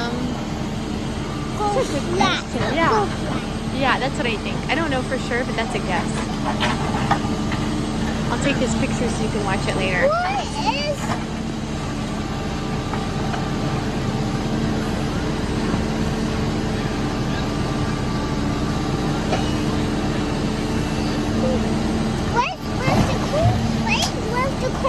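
A backhoe's diesel engine rumbles steadily nearby.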